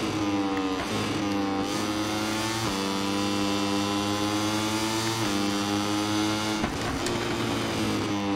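A racing motorcycle engine roars at high revs, rising in pitch and dropping sharply with each gear change.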